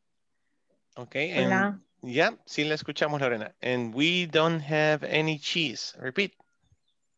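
A young man speaks with animation into a headset microphone over an online call.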